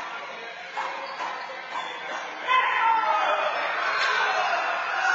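A handball smacks against a wall in an echoing court.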